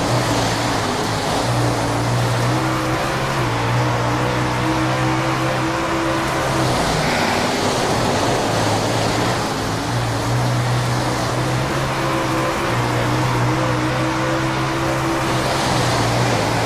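Tyres skid and spray over loose dirt.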